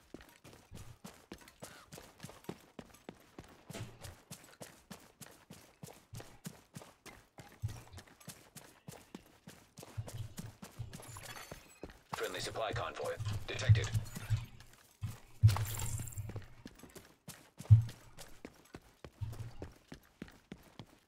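Footsteps run quickly and steadily over hard ground.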